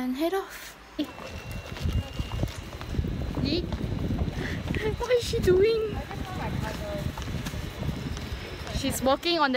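Young women talk and laugh together outdoors.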